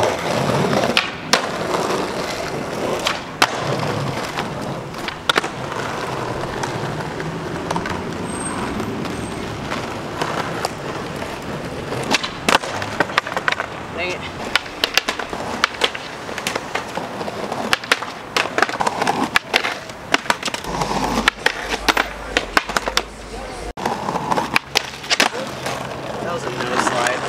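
A skateboard snaps and clacks sharply against the ground.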